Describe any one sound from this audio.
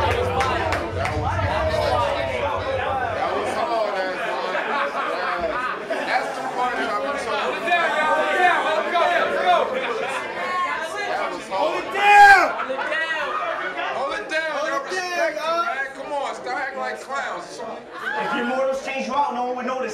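A young man raps loudly and rhythmically to a crowd.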